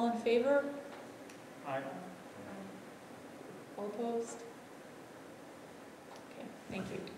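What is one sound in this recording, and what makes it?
A woman speaks in short, calm phrases, heard in a large echoing room.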